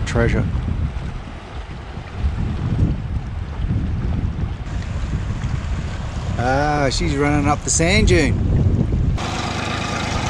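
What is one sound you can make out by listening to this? Wind buffets and water rushes past a moving boat.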